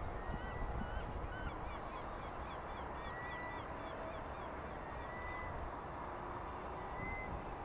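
A heron wades slowly through shallow water with soft splashes.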